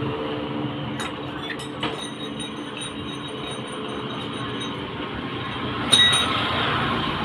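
Metal tools clink against each other on hard ground.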